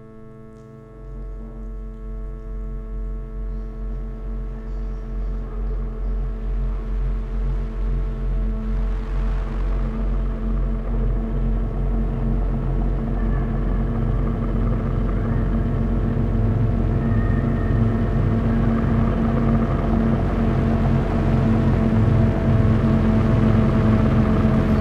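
A deep electronic beat pulses evenly and swells steadily.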